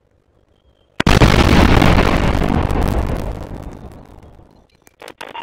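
A loud explosion booms and slowly fades.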